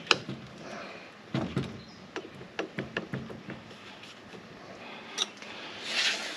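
Plastic parts click and tap.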